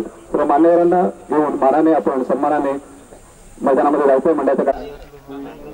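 A man speaks loudly through a microphone and loudspeaker.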